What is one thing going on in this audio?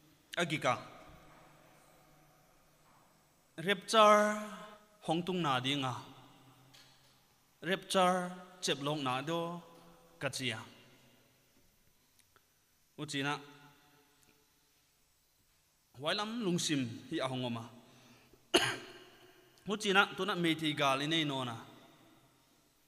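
A man preaches with animation through a microphone, in phrases broken by pauses, in a room with a light echo.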